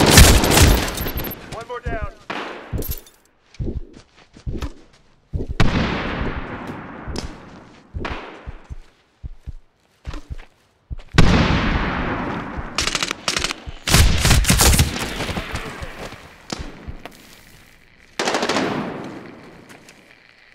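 Gunfire bursts out in sharp, echoing volleys.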